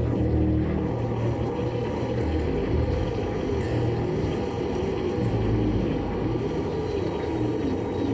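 An electric bass guitar plays live through a loud concert sound system.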